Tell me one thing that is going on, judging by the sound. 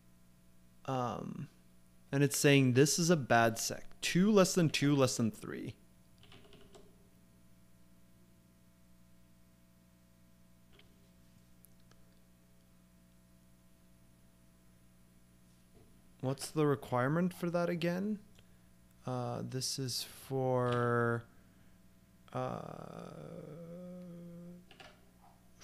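A man talks calmly and close to a microphone, in bursts with long pauses.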